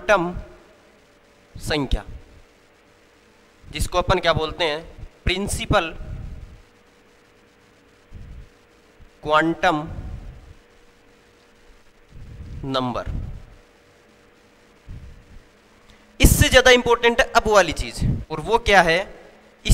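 A young man speaks into a clip-on microphone in short bursts, explaining.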